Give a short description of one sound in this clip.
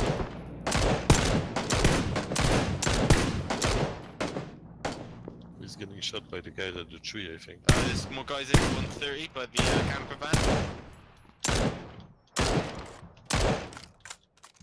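A rifle fires single shots in quick bursts, each with a sharp crack and echo.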